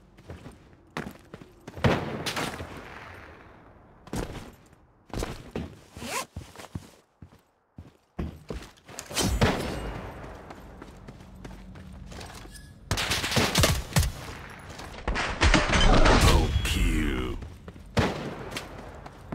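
Gunshots bang in short bursts, each followed by a brief ringing echo.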